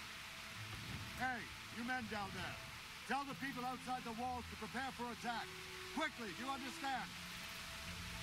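A man shouts urgent orders from a distance.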